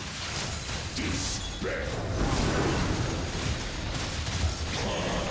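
Magic blasts and weapon hits crackle and burst in a fast fight.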